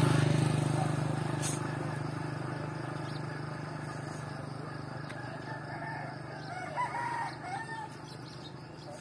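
A motorbike engine hums nearby and fades away.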